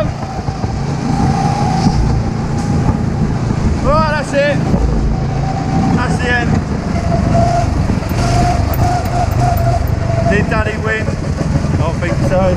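Wind rumbles loudly against a microphone.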